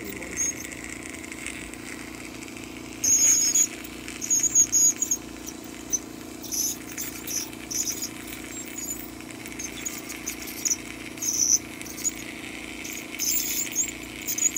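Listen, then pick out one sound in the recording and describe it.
A suction machine hums steadily.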